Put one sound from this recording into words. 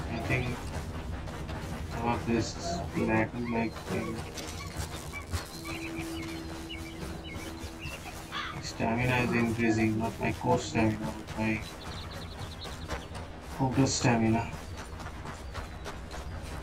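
Footsteps crunch over grass and loose stones.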